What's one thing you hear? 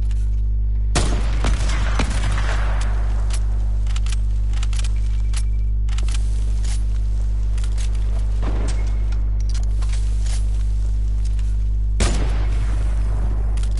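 A sniper rifle fires with a loud crack and a rolling echo.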